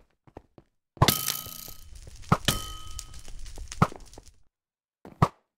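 A bow string twangs as an arrow is loosed.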